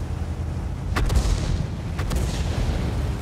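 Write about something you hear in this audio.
Distant cannon shots crack and echo.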